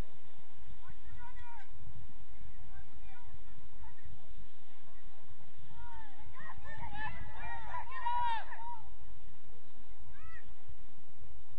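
Young women shout to each other across an open field in the distance.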